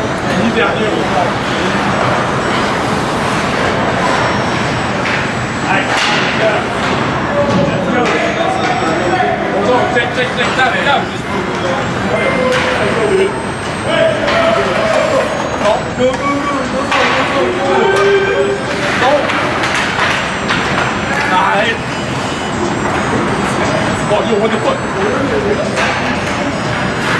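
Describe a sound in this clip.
Spectators chatter nearby in a large echoing arena.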